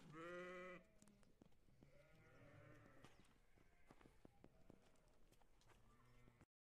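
A sheep bleats loudly nearby.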